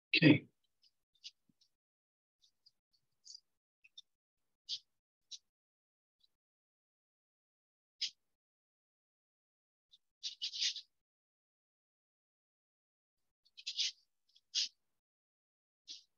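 A paintbrush brushes softly across paper in short strokes.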